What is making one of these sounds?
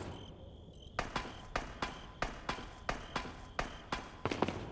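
Boots clank on metal ladder rungs while climbing.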